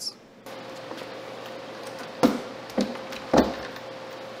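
A plastic fuel tank knocks against a motorcycle frame.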